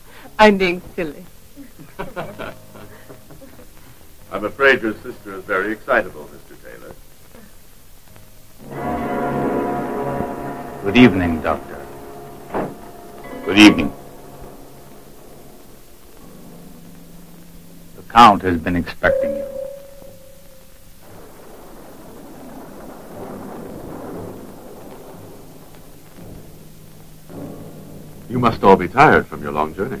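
A man speaks with a close, clear voice.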